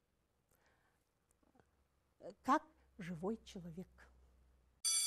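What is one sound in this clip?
A middle-aged woman speaks calmly into a microphone, as if teaching.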